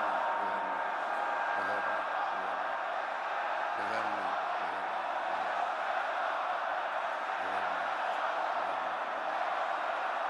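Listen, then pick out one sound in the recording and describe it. An elderly man speaks forcefully through a microphone.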